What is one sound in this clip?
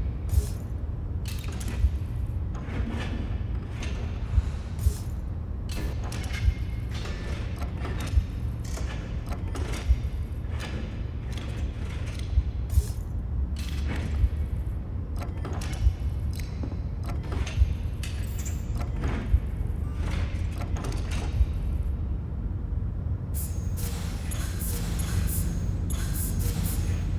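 Short menu clicks sound as selections change.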